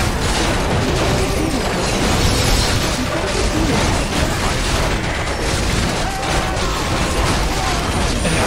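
Weapons clash and spells burst in a busy game battle.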